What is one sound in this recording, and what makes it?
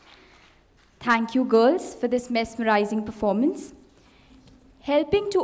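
A woman speaks through a loudspeaker in a large hall.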